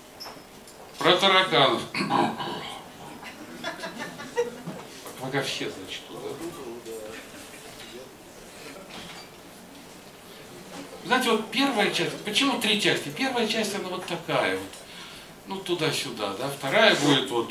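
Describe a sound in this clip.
An elderly man speaks with animation into a microphone, heard through loudspeakers.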